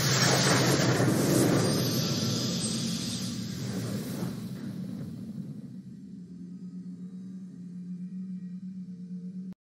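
A victory fanfare plays and slowly fades.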